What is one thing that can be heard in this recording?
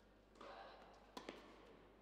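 A tennis racket strikes a ball sharply.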